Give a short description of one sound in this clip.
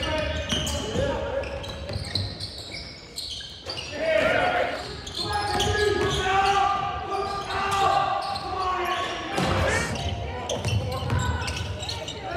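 Sneakers squeak sharply on a hard court in an echoing gym.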